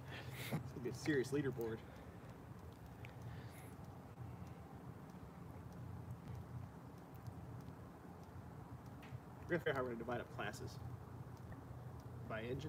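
A fire crackles and pops in a metal barrel.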